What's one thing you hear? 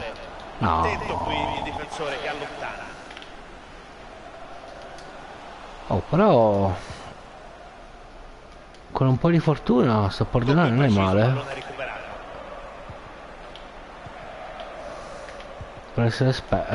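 A man talks animatedly and close to a microphone, in short bursts.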